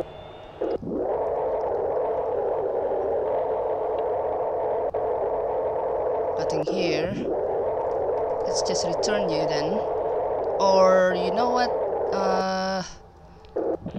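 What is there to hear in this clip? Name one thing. A low electronic hum drones steadily.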